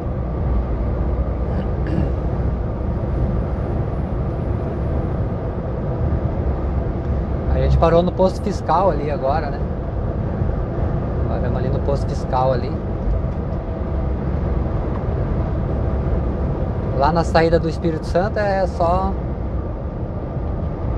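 A vehicle's engine hums and its tyres rumble steadily on the road.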